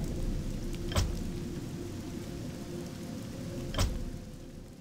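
Menu buttons click sharply twice.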